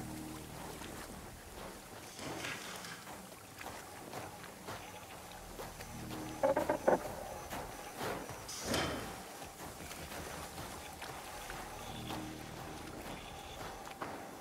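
Tall grass rustles and swishes as someone pushes through it.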